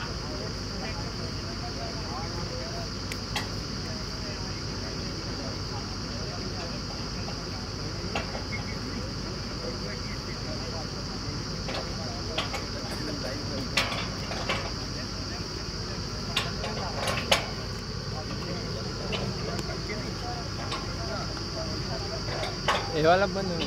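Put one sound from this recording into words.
A drilling rig's engine drones steadily outdoors.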